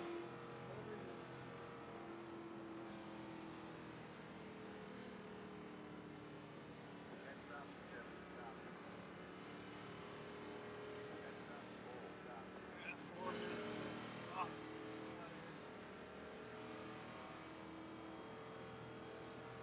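A race car engine hums steadily at low speed.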